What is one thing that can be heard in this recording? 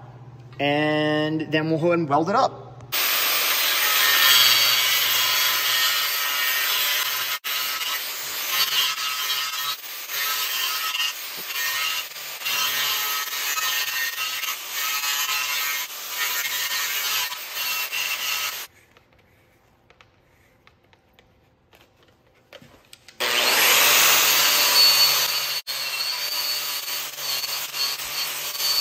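An angle grinder whirs up to speed and grinds loudly against metal, stopping for a few seconds partway through.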